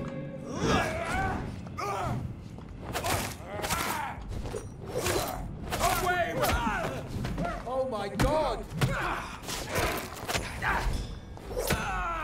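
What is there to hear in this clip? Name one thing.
Blows land with sharp thuds in a fight.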